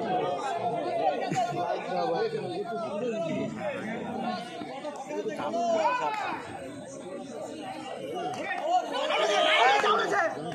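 A crowd of men shouts and cheers outdoors.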